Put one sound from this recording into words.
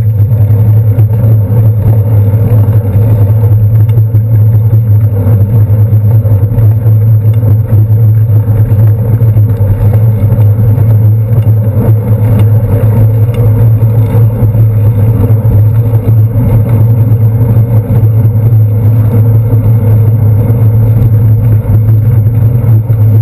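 A bicycle rolls steadily along an asphalt street with a low rumble.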